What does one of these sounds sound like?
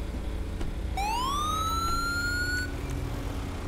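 A car engine revs up sharply.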